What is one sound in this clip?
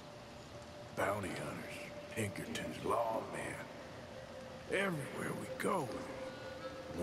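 Crows caw loudly and harshly.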